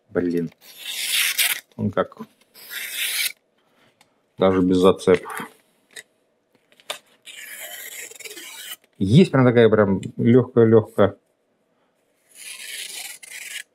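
A knife blade scrapes in short rasping strokes.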